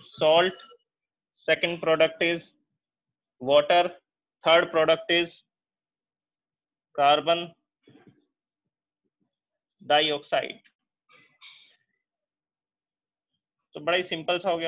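A man speaks calmly and clearly in short phrases, close to a microphone.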